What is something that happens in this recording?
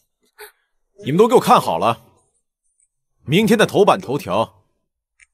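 A young man speaks firmly and loudly.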